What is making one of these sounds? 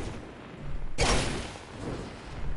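A heavy weapon swings with a sudden loud whoosh.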